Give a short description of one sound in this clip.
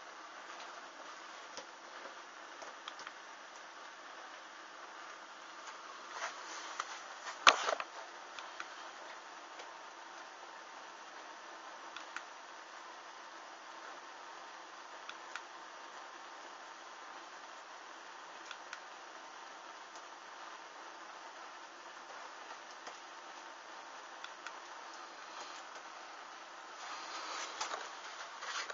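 Small flames crackle and pop quietly as fabric burns.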